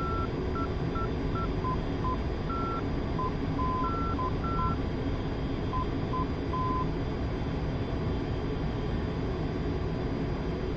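A jet engine roars steadily in the cockpit.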